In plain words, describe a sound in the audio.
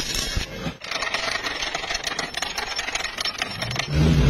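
A chipping hammer taps slag off a metal weld.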